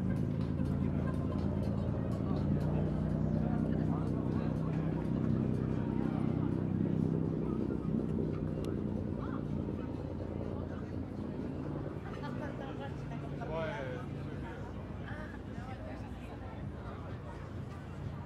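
Men and women chat faintly in passing.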